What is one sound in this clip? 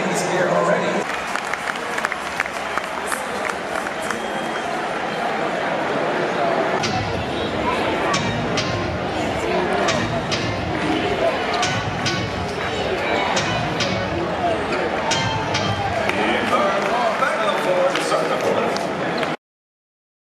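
A large crowd murmurs and chatters in an echoing arena.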